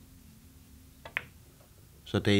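A billiard cue strikes a ball with a sharp click.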